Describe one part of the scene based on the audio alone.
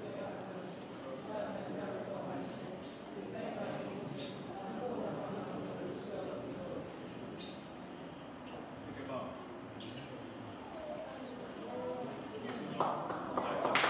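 A group of young students recite together in unison in a hall.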